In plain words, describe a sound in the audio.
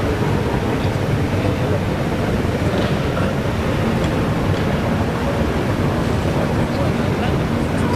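Men talk quietly among themselves nearby.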